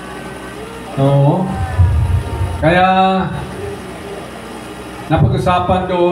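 An older man sings through a microphone and loudspeakers.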